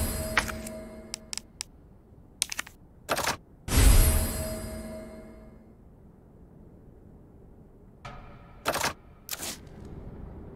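Short electronic menu clicks sound.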